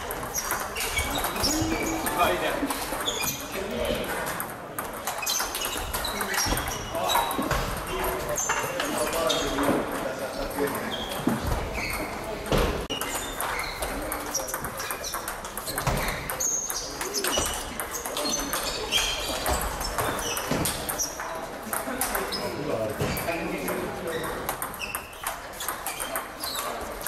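Table tennis balls click rapidly on tables and paddles in a large echoing hall.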